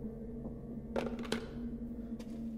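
A telephone handset is set back down on its cradle with a clunk.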